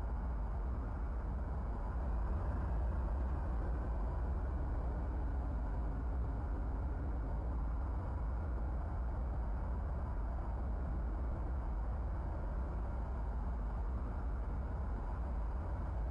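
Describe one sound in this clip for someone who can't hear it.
A jet engine idles with a steady low rumble.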